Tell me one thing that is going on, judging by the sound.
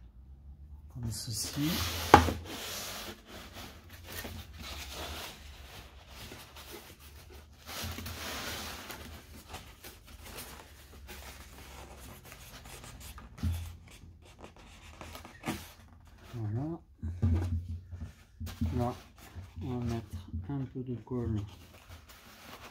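Stiff foam sheets rustle and creak as they are handled.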